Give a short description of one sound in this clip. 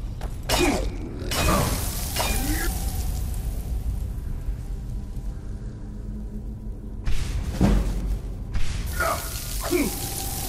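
A magic spell hums and hisses steadily.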